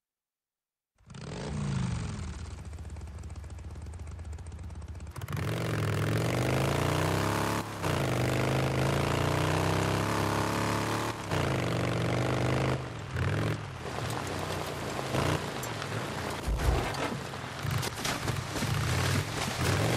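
A motorcycle engine revs and accelerates along a road.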